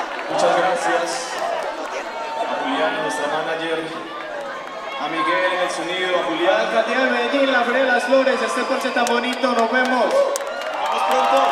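A large crowd sings and cheers in a big echoing space.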